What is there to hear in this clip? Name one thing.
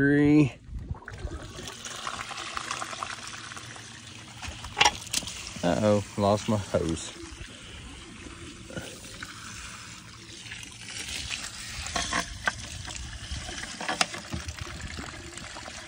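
Water sprays from a garden hose and splashes onto metal and grass.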